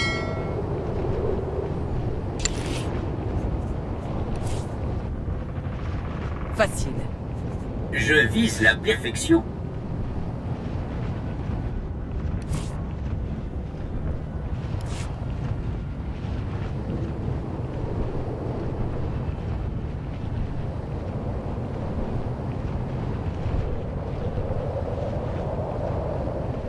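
A hovering vehicle's engine hums low and steadily.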